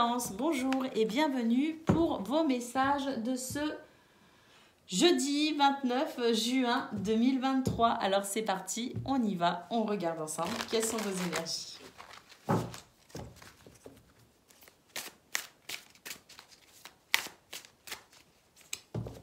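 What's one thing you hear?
Playing cards flick and rustle as they are shuffled by hand.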